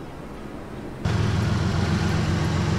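A diesel locomotive engine roars loudly close by.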